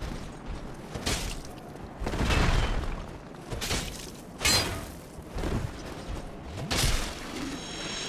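Heavy weapons clash and strike with loud metallic blows.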